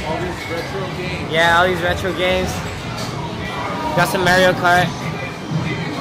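People chatter in a busy arcade.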